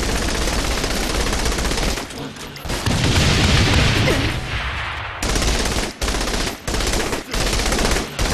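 A submachine gun fires rapid bursts of shots.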